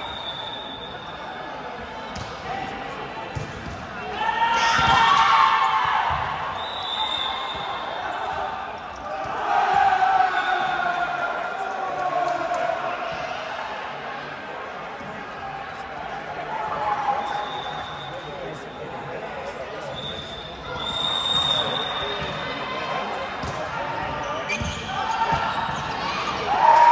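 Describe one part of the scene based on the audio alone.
Young men and women chatter and call out nearby in a large echoing hall.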